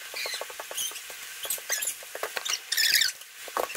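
A rolling pin rolls over dough with soft knocks.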